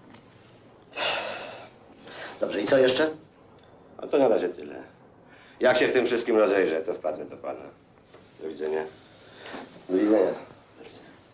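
A middle-aged man with a deeper voice speaks firmly.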